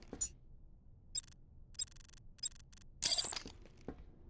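Short electronic menu clicks blip several times.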